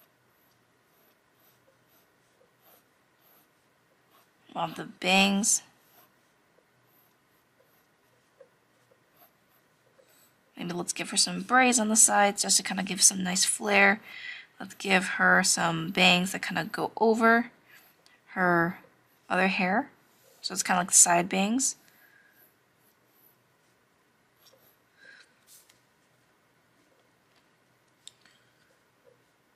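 A pencil scratches lightly across paper.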